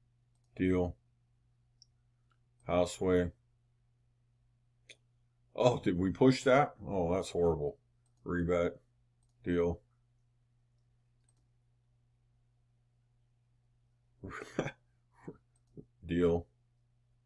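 A middle-aged man speaks calmly in short phrases close to a microphone.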